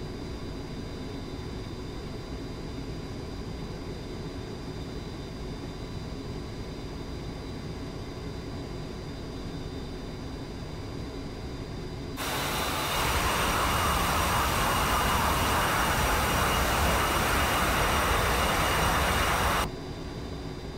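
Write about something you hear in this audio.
Jet engines hum low and steady, muffled as from inside a cockpit.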